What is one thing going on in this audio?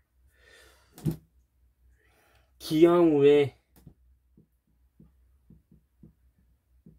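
A hand knocks lightly on a wall several times.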